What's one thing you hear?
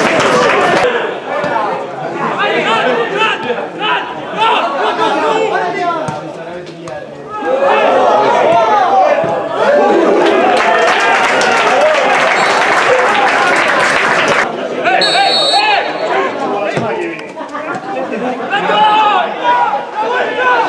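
Men shout and call out to each other.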